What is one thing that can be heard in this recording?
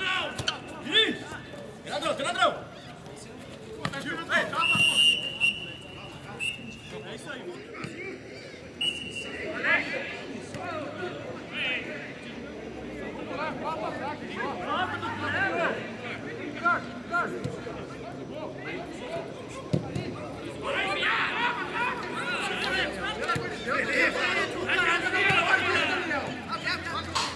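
Men shout to each other across an open field outdoors.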